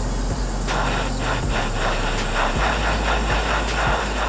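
A torch flame roars steadily.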